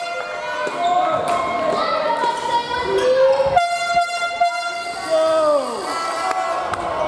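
Sports shoes squeak sharply on a hard court floor.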